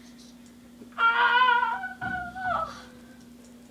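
A young boy shouts loudly nearby.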